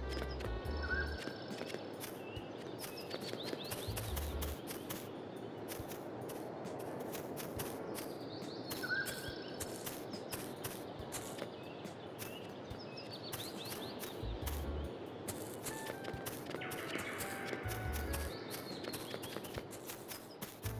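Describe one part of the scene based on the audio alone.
Light footsteps patter quickly on the ground.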